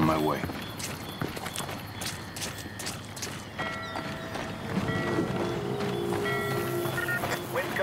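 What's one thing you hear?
Footsteps run over wet gravel.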